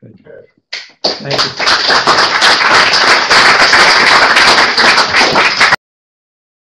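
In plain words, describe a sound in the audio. A crowd of people applauds loudly.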